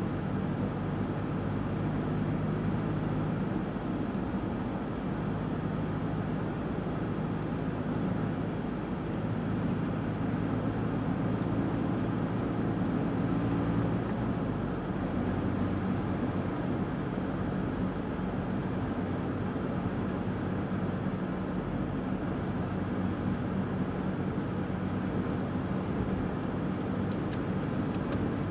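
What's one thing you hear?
Tyres roll over the road with a steady rumble.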